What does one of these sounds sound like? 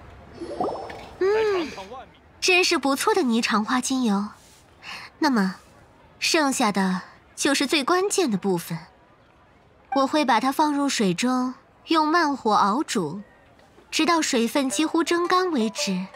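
A young woman speaks calmly and warmly, close by.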